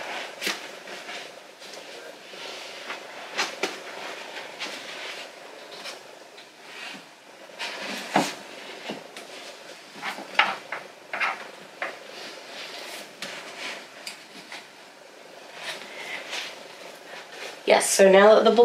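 Books knock and rustle as they are handled on a shelf.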